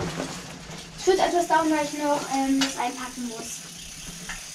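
A young girl speaks in a high voice nearby.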